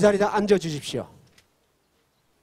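A man speaks loudly through a loudspeaker outdoors, then breaks off.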